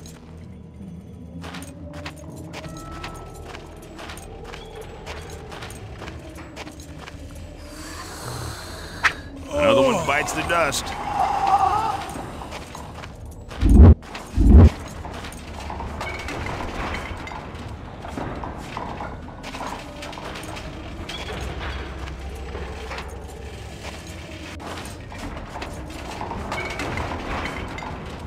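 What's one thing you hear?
Footsteps crunch steadily on dirt.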